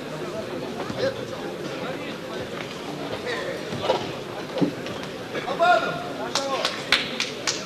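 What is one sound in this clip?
Gloved punches thud against a boxer.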